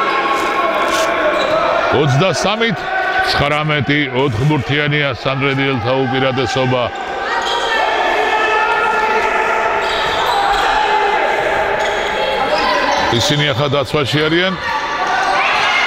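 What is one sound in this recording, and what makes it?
Players shout to each other across a large echoing hall.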